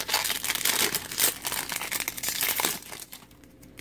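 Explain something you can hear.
A foil wrapper crinkles and tears close by.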